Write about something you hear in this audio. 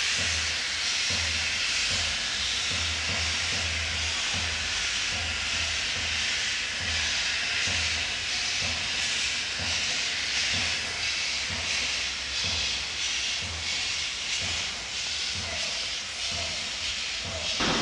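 Steam hisses loudly from a steam locomotive's cylinders.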